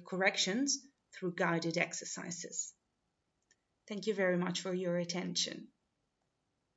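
A young woman speaks calmly through an online call microphone.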